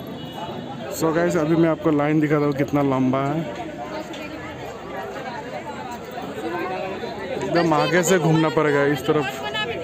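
A crowd of people chatters and calls out loudly outdoors.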